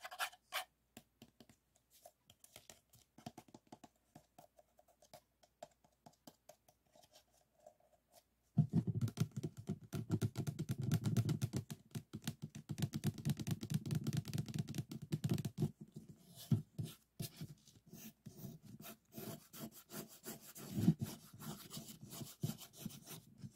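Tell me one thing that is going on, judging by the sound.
Fingers rub and tap on a stack of paper cups.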